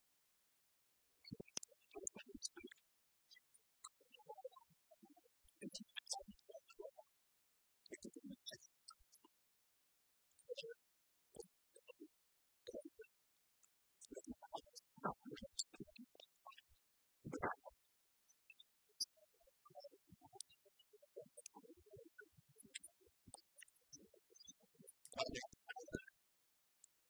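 Keys clatter on laptop keyboards.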